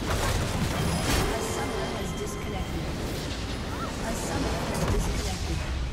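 Game spells and attacks crash and explode rapidly.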